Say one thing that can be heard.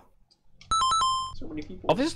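Short electronic beeps sound in a steady countdown.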